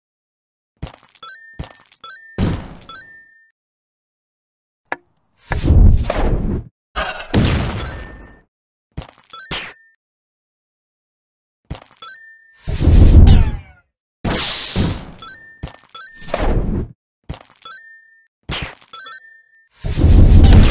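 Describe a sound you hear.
Bright chimes ring out in quick runs.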